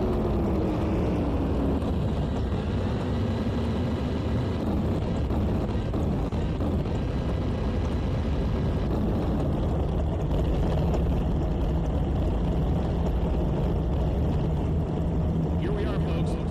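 A drag racing car engine rumbles in place at the start line.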